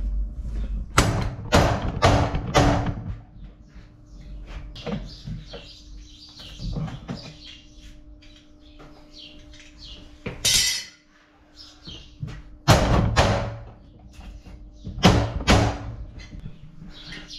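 Metal parts clank and knock as a man works on a machine.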